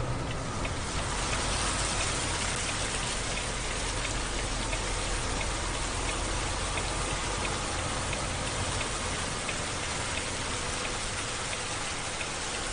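Wind rushes in through an open window.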